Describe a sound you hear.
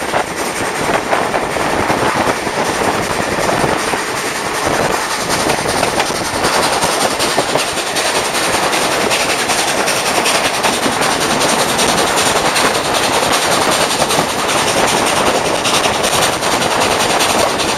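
Wind rushes loudly past, heard from outdoors.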